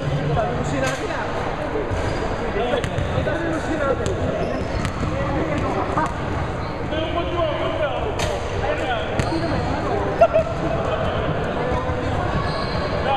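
Men talk and call out across a large echoing gym.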